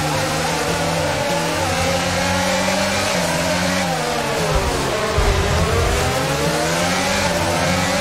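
A racing car engine screams at high revs, its pitch rising and dropping with gear changes.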